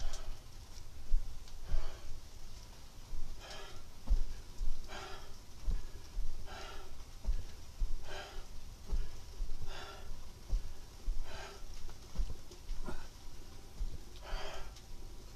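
A man breathes out hard in a steady rhythm.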